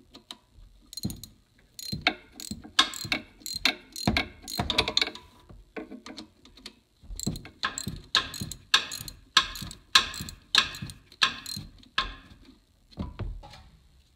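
A socket wrench ratchets with quick, repeated clicks.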